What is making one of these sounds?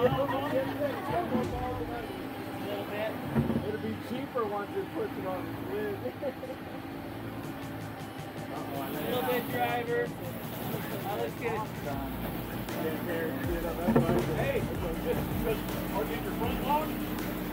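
Several men talk and call out outdoors nearby.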